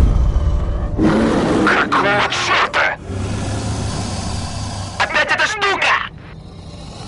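A monster roars and growls loudly.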